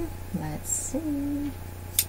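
Scissors snip thread.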